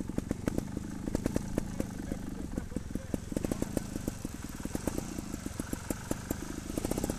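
An electric trials bike's motor whines as it moves off.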